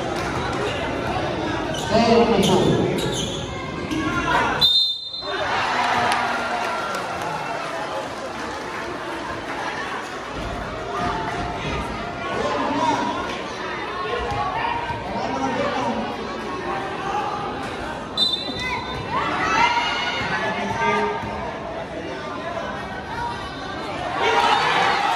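A large crowd chatters and cheers in an echoing hall.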